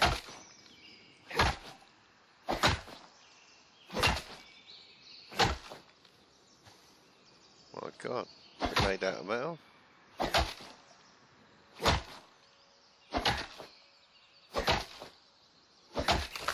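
An axe chops into a tree trunk with sharp, regular thuds.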